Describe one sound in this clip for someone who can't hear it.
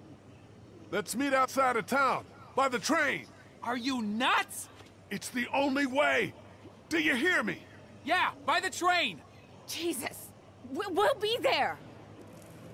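A man calls out urgently.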